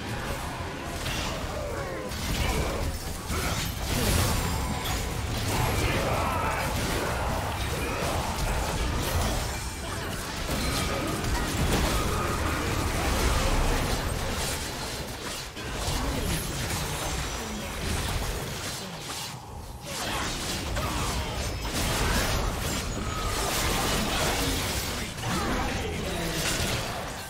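Magic blasts, clashing weapons and fizzing spell effects sound in quick succession during a busy fight.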